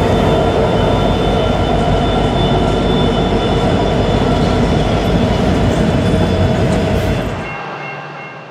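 A freight train rumbles and clanks loudly past, close by.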